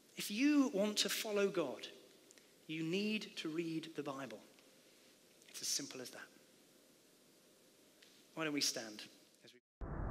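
A man speaks with animation into a microphone, pausing often.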